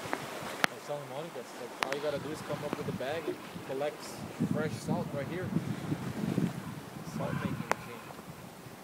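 An older man talks close by.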